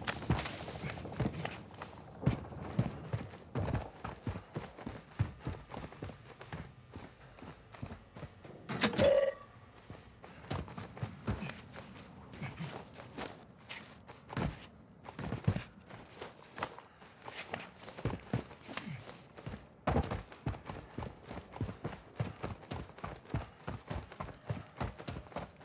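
Footsteps run quickly over hard ground and gravel.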